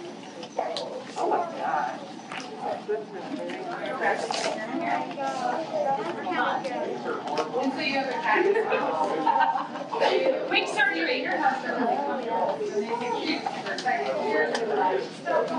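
Cardboard boxes rustle and tap as children handle them.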